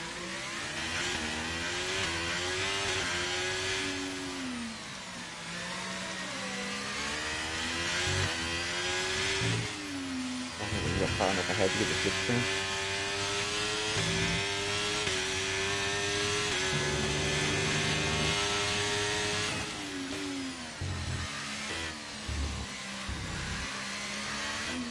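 A racing car engine screams, rising and falling in pitch as gears shift.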